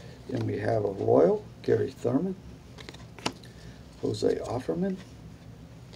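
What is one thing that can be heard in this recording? An elderly man talks calmly and close by.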